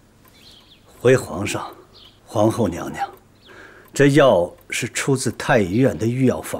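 A middle-aged man speaks calmly and respectfully, close by.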